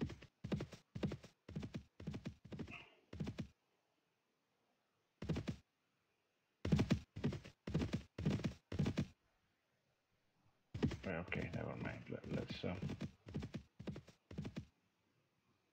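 Horse hooves thud along at a steady trot, in bursts with pauses.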